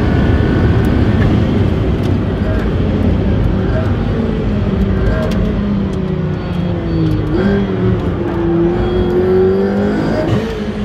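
A car engine roars loudly from inside the cabin, rising and falling in pitch as it drives fast.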